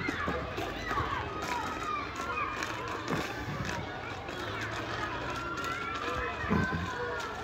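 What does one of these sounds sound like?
A small toy suitcase rolls and rattles over gravel.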